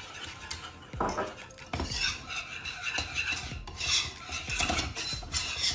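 A whisk scrapes and clatters against a metal pot.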